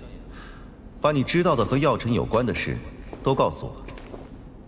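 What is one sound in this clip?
Another young man speaks firmly up close.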